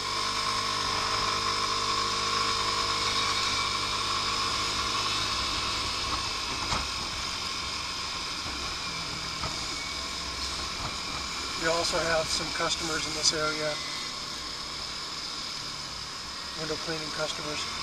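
A scooter engine hums steadily while riding.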